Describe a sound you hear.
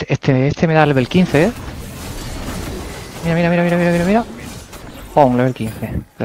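Game spell effects whoosh and clash.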